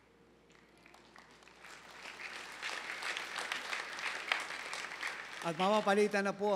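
A crowd claps and applauds, growing louder.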